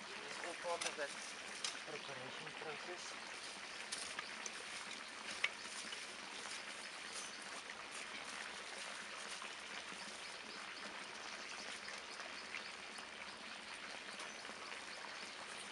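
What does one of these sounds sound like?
A spade scrapes and digs into loose compost.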